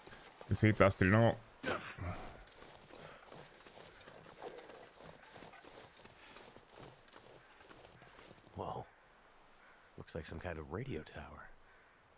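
A young man speaks into a close microphone in short bursts.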